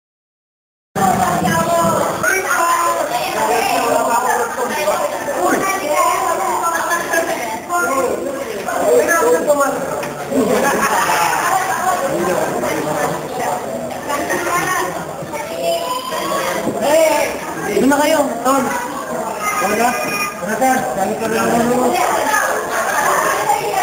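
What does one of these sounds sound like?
A crowd of young men and women chatter and laugh nearby.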